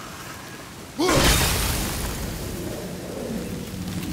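Wooden planks smash apart with a loud crash.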